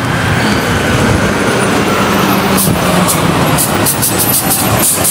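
A bus engine rumbles as it drives past.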